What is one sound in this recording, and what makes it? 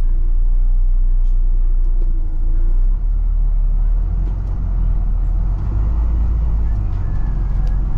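A car drives past close by in the other direction.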